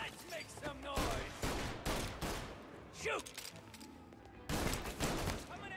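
A revolver fires loud shots that echo in a large hall.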